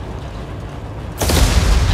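A loud explosion bursts and roars.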